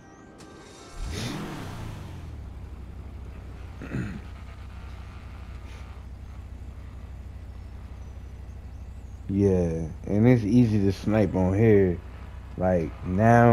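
A car engine starts with a roar and settles into a low idle.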